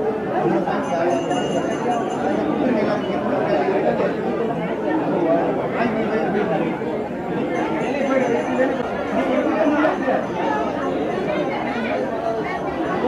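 A crowd of men talks and murmurs close by.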